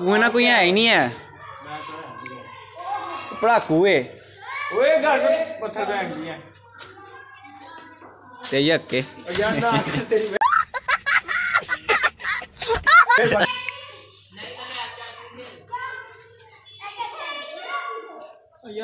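Teenage boys talk and shout with animation nearby.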